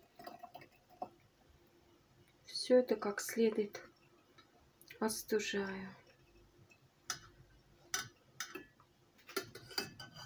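Liquid pours from a pot into a glass jar.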